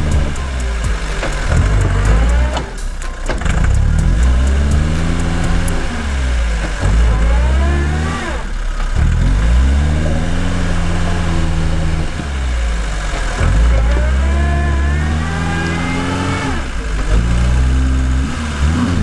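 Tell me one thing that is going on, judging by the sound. An off-road car engine revs hard, rising and falling again and again.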